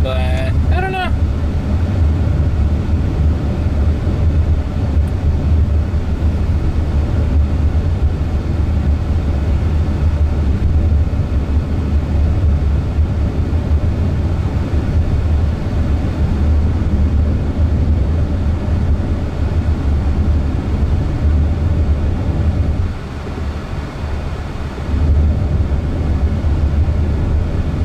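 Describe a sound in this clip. A car's tyres rumble steadily on the road from inside the cabin.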